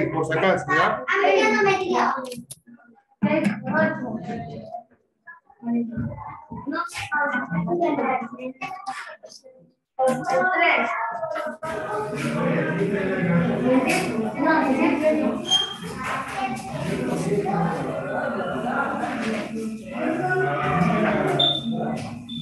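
A young boy speaks over an online call.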